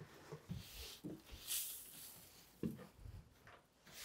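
A broom sweeps across a floor.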